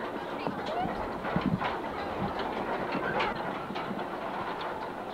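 A crowd of children and adults chatters and calls out nearby outdoors.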